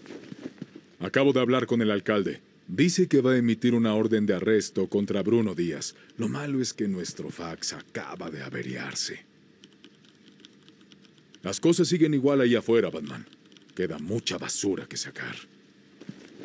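A man speaks in a low, weary voice, close by.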